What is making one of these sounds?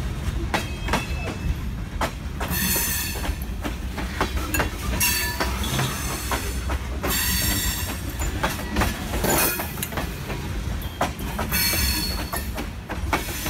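A freight train rumbles past close by.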